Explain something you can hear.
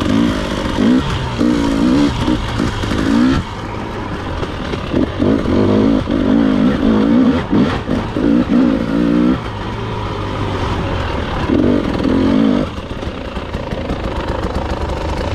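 Tyres crunch over dirt and leaves.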